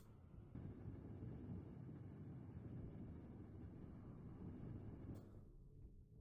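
A welding tool crackles and hisses steadily as it sparks.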